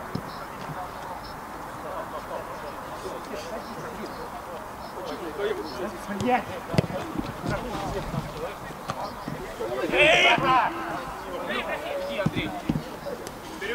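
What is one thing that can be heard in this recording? Football players shout to each other across an outdoor pitch.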